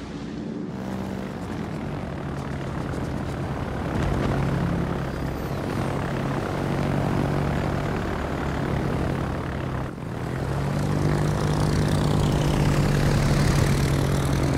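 Aircraft engines drone steadily overhead.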